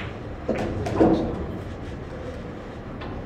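Billiard balls knock together on a table.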